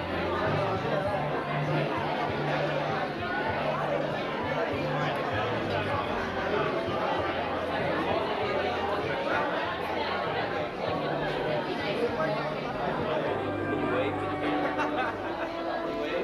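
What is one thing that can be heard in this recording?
A crowd of men and women chatter all around in a large hall.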